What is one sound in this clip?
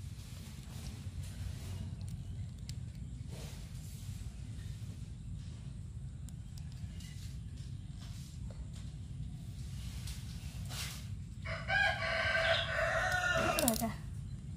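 Plastic pieces click softly as they are snapped together.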